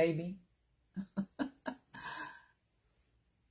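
A middle-aged woman laughs.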